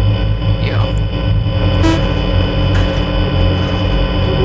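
Static hisses and crackles steadily from a monitor.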